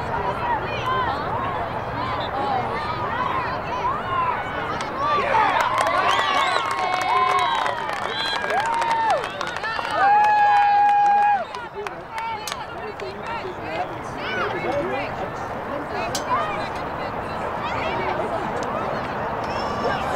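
Young women shout and cheer excitedly outdoors.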